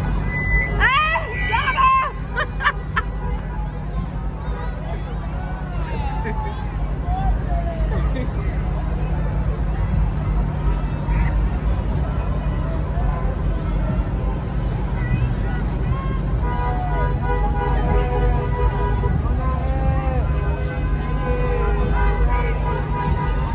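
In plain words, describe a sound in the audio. A crowd of people talks and calls out in the distance outdoors.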